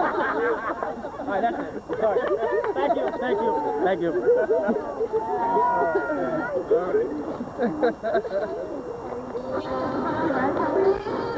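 Several men and women talk and laugh together close by, outdoors.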